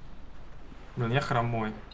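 A young woman speaks briefly and animatedly into a microphone.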